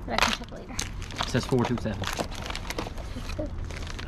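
A plastic box lid clatters and snaps.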